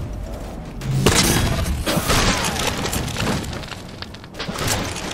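An explosion bursts with a crackle of sparks.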